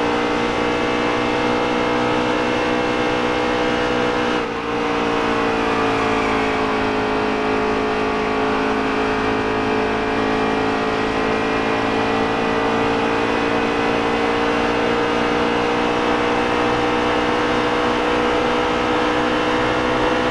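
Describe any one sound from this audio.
A race truck engine roars steadily at high revs.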